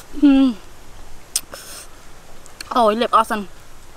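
Thick sauce squelches as fingers dip into it.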